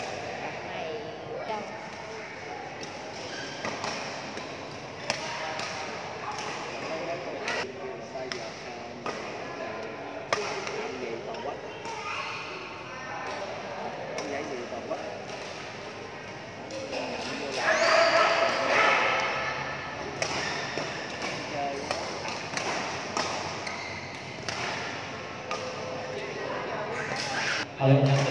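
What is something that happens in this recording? Rackets strike a shuttlecock with sharp pops, back and forth.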